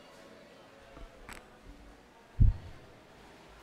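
A microphone is bumped with a few dull thumps.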